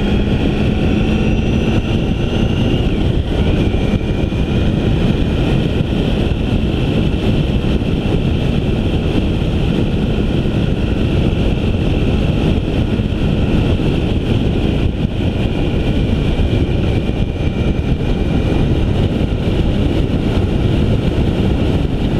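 An engine hums steadily.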